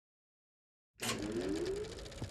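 A film projector whirs steadily.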